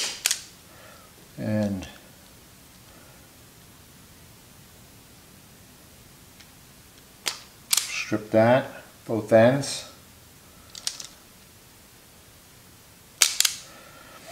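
A crimping tool clicks shut on a wire terminal.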